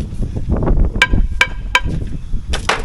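Metal clanks and taps against a metal sill.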